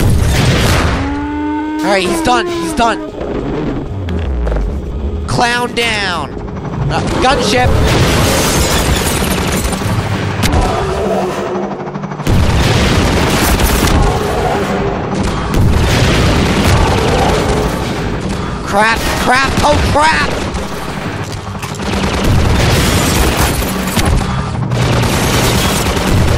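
A rocket launcher fires with a loud whoosh.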